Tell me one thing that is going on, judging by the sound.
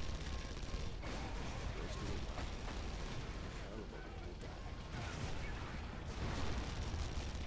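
An explosion bursts and crackles.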